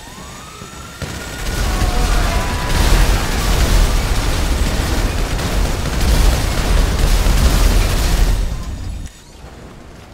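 A weapon fires in a long burst, roaring and echoing as in a tunnel.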